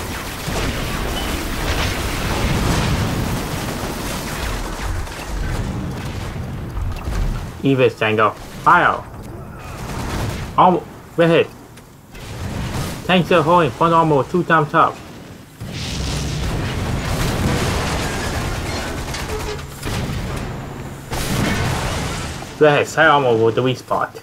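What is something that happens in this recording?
Explosions rumble and crash.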